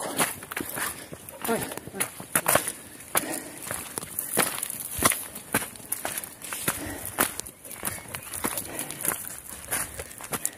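Footsteps crunch steadily on a gravel path.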